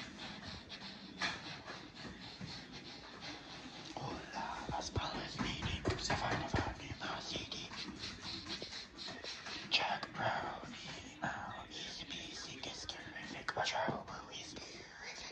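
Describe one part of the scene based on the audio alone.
Socked feet pad softly across a hard floor.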